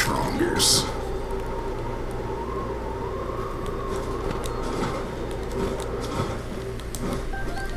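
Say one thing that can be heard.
Wind rushes steadily past a figure gliding through the air.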